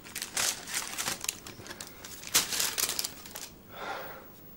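A young man bites and chews food.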